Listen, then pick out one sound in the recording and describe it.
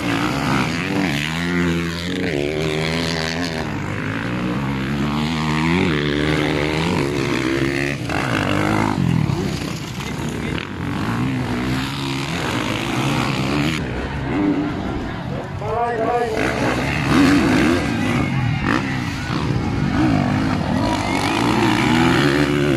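Dirt bike engines rev loudly, rising and falling in pitch as bikes pass close by.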